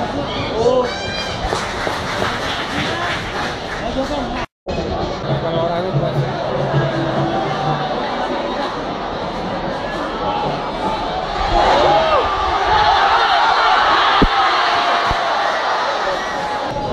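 A crowd of spectators cheers and shouts in an open-air stadium, growing louder near the end.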